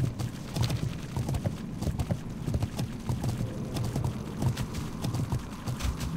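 Footsteps run steadily along a stone path.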